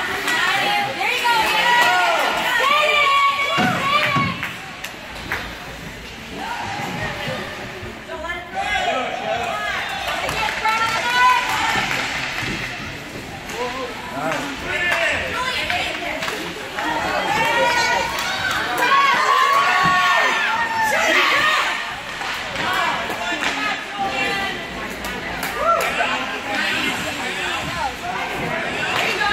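Hockey sticks clack against the puck.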